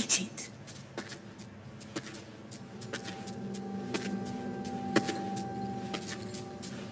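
Heavy footsteps thud slowly and steadily on a hard floor.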